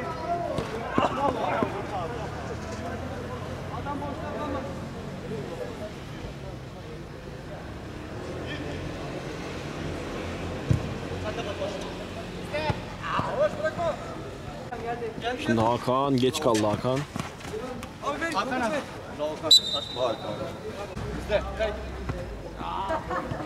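Young men shout to each other on an outdoor pitch.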